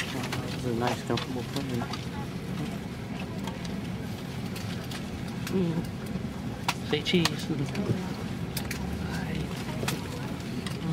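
An aircraft cabin hums with a steady low engine drone.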